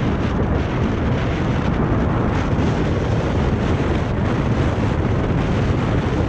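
Wind buffets the microphone loudly and steadily.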